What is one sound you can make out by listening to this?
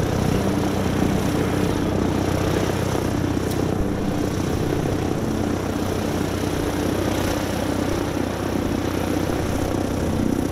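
Wind blows steadily across an open outdoor space.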